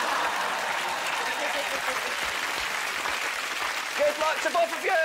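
A studio audience applauds and cheers.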